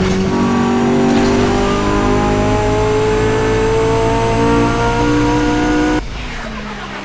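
A racing car engine roars at high speed.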